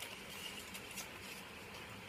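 Paper money rustles in someone's hands.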